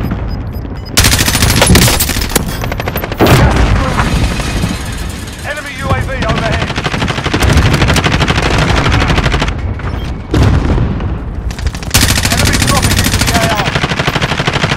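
An automatic rifle fires rapid bursts of shots.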